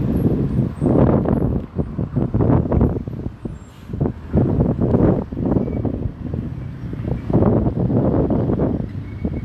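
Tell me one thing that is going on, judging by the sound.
A bus engine rumbles across the street.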